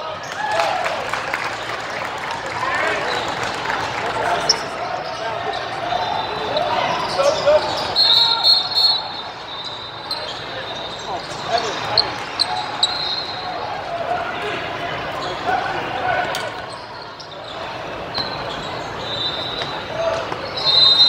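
A crowd of spectators chatters throughout, echoing in a large hall.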